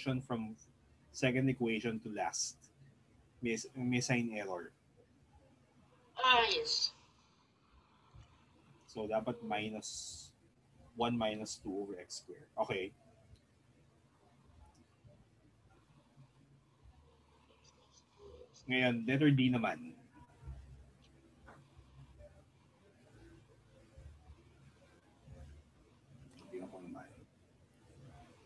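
A man explains calmly through a microphone, in short bursts with pauses.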